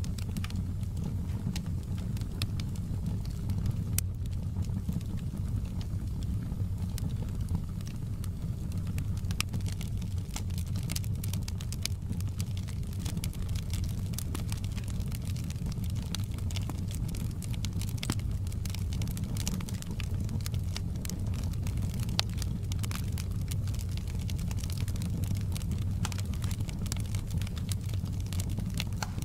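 Flames roar low and steady.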